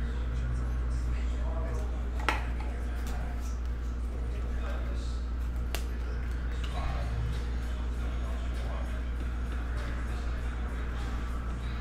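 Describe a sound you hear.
Trading cards slide and flick against each other in a hand.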